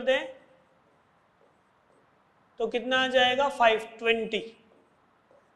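A man speaks in a clear, explaining tone, close to a microphone.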